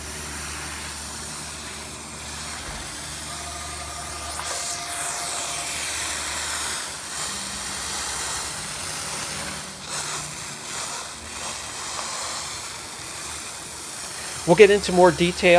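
A pressure sprayer hisses as it sprays foam.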